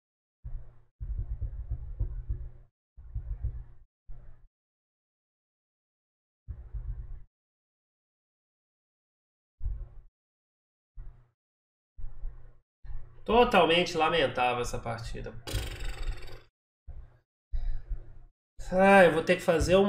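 A man speaks calmly into a close microphone, with pauses.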